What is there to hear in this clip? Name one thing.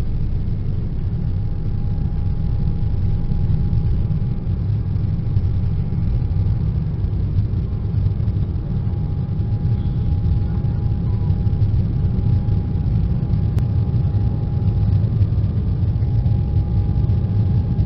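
Jet engines roar loudly and steadily as an airliner climbs.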